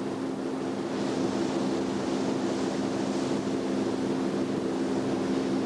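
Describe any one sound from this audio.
Rough waves crash and splash against a boat.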